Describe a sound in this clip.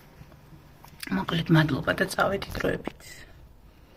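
A young woman speaks quietly and close up.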